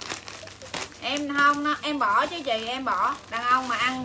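Scissors snip through crinkling plastic wrapping.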